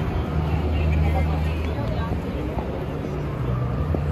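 A man talks on a phone close by.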